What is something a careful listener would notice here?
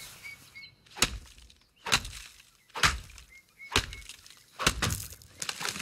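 An axe chops into a tree trunk with sharp, repeated thuds.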